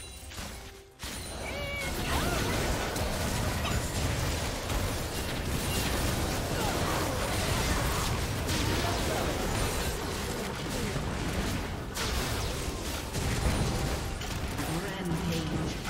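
Magic spells crackle and blast in a fast game battle.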